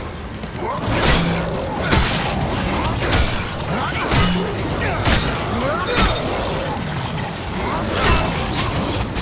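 Heavy blows thud during a struggle.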